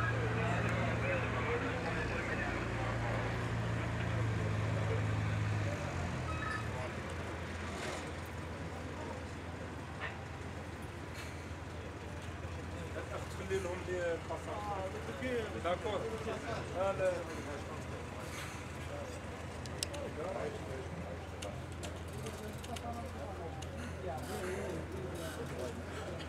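A bus engine rumbles as the bus pulls up close by.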